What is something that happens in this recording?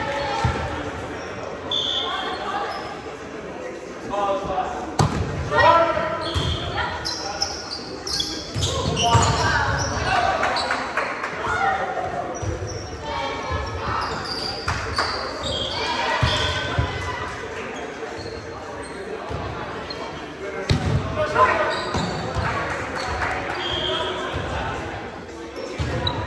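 A volleyball thuds off players' hands.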